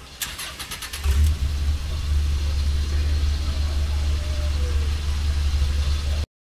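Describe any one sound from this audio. A jeep's engine rumbles low and steadily at idle.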